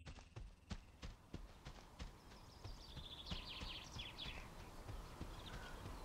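Footsteps brush through grass.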